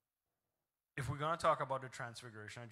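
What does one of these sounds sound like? A man speaks through a microphone in a large echoing hall, preaching with animation.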